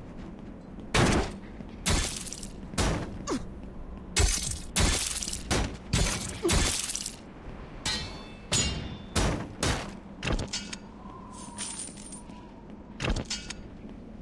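Swords clash and clang against shields in a fight.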